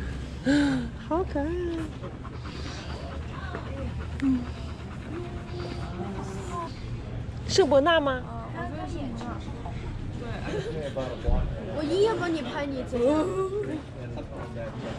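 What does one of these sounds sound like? A young woman talks nearby in a high, affectionate voice.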